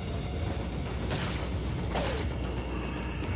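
A knife swishes and slashes.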